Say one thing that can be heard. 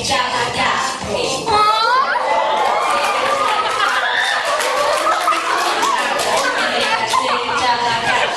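A young woman sings loudly into a microphone over a loudspeaker.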